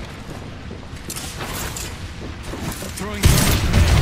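A metal door slides open.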